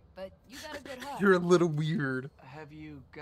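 A man answers in a friendly voice.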